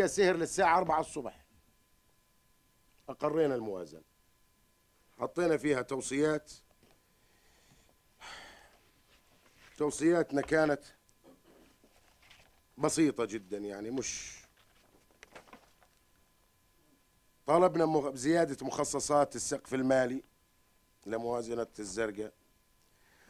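A middle-aged man speaks calmly into microphones, in bursts with pauses.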